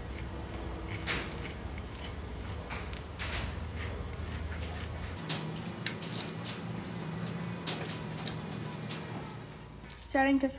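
A tool scrapes and crackles across a wax honeycomb.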